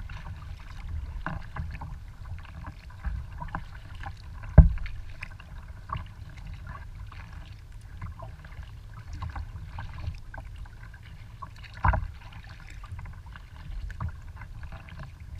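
A paddle dips and pulls through the water in a steady rhythm.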